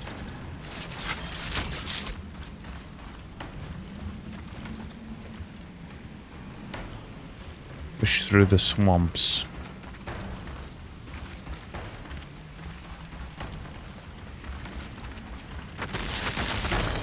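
Heavy footsteps run over soft, muddy ground.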